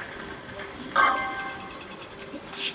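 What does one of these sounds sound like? Bowling pins crash loudly through a television speaker.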